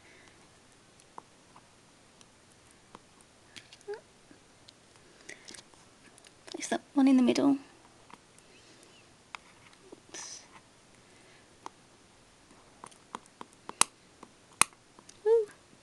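A stiff card rustles and taps as hands handle it.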